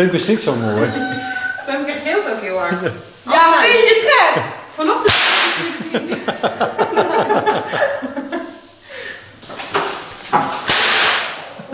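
A young woman laughs and talks excitedly close by.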